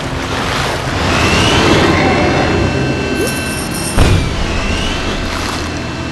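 Explosions boom and crash.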